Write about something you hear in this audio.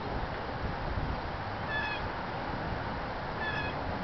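A bicycle rolls softly over grass.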